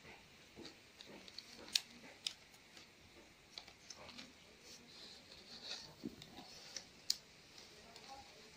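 Stiff palm leaves rustle and crackle as hands weave them.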